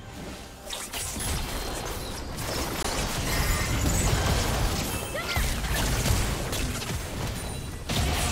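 Spell blasts and impacts crackle and boom in a game battle.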